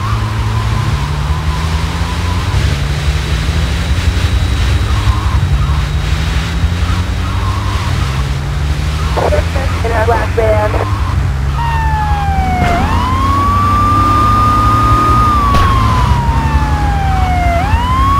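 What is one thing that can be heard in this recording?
A vehicle engine revs and shifts gears repeatedly as it drives.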